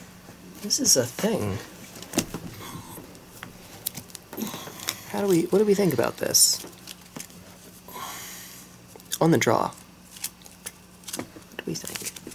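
Playing cards rustle and slide against each other in someone's hands.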